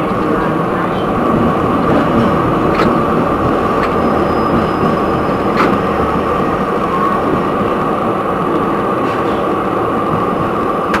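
A tram rumbles and hums steadily along its rails.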